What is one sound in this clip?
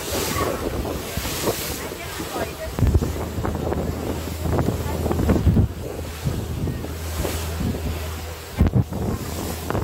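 Wind blows hard across the microphone.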